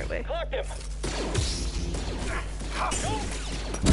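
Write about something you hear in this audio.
A lightsaber hums and swings with buzzing whooshes.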